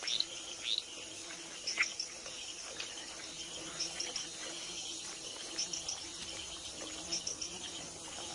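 A wild pig snuffles with its snout.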